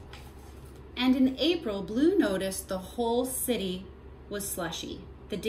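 A woman reads aloud calmly, close by.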